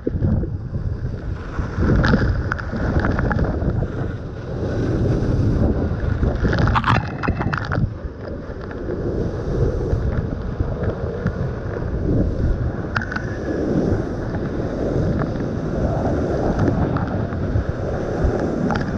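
Water spray splatters against the microphone.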